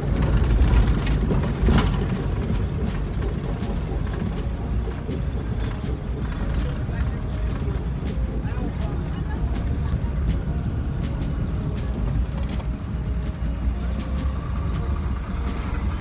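The vehicle body rattles over a rough road.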